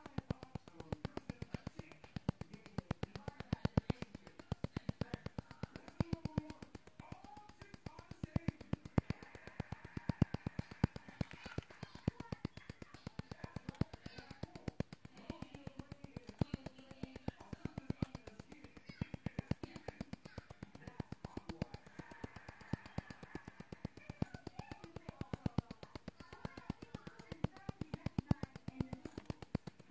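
A handheld skin device ticks rapidly and steadily.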